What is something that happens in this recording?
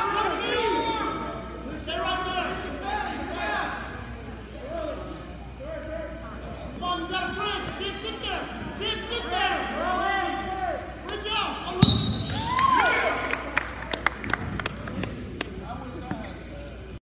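Men shout encouragement loudly in an echoing hall.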